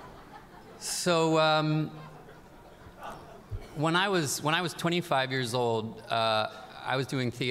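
A man speaks calmly into a microphone, heard through loudspeakers in a large hall.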